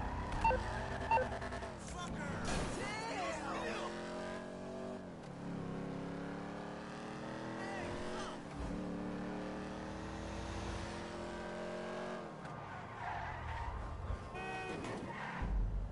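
A car engine revs, rising in pitch and dropping with each gear shift.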